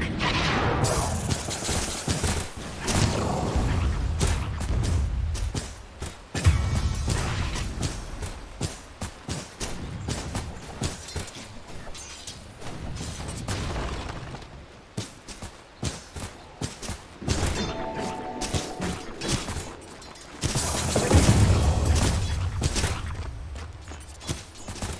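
Magic spells burst with booming whooshes.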